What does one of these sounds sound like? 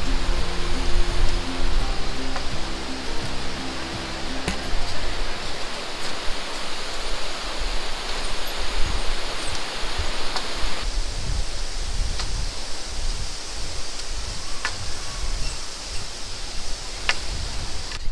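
Footsteps clank on a metal bridge deck.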